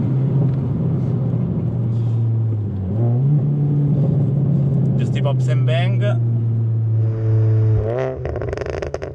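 A car engine hums steadily from inside the cabin and rises in pitch as it revs.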